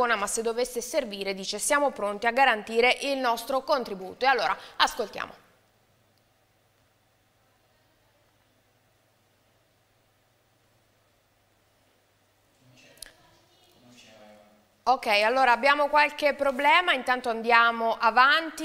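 A woman speaks calmly and clearly into a microphone, close by.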